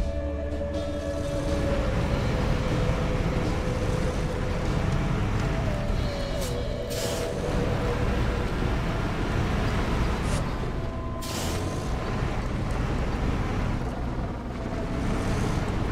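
A heavy truck engine rumbles and strains steadily.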